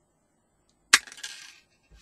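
An electric spark snaps sharply.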